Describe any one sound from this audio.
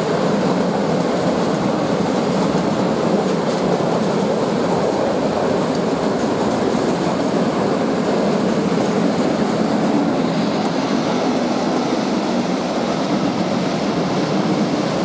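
A long freight train rumbles and clatters steadily past along the tracks.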